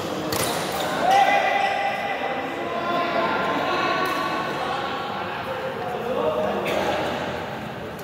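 Men call out to each other in an echoing hall.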